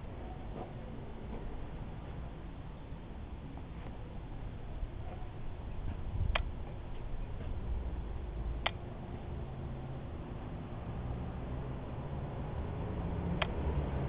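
A small motor vehicle engine idles steadily nearby.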